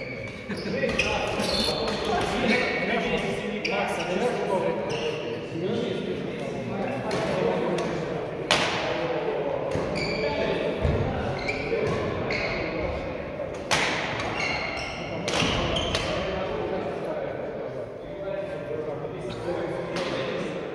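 Badminton rackets strike a shuttlecock with sharp pops, echoing in a large hall.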